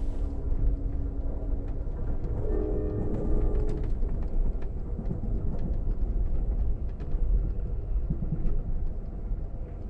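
A train rumbles steadily along the tracks, with a low roar and rattling.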